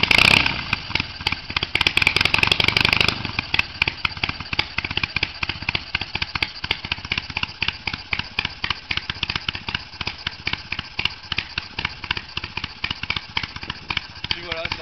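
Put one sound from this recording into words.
A motorcycle engine idles with a rapid, uneven popping beat.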